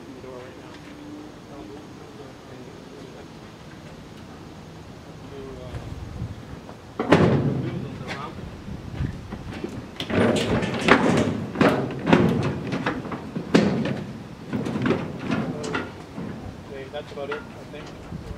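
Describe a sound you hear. Men talk to each other outdoors.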